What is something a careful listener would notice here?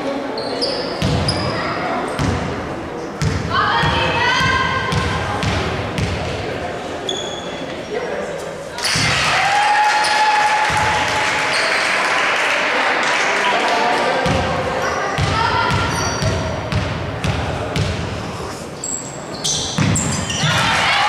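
A basketball bounces repeatedly on a wooden floor in an echoing hall.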